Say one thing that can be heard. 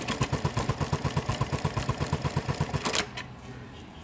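A sewing machine stitches in a fast, steady rhythm and then stops.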